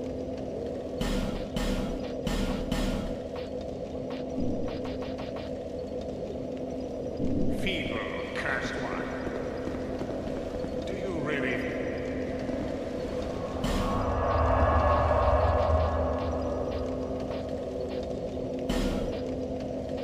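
Soft menu clicks and chimes sound in quick bursts.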